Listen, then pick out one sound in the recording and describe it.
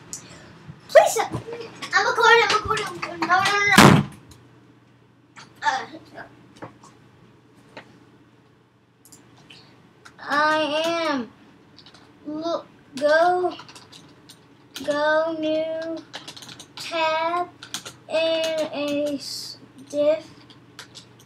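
A young boy talks excitedly close to a microphone.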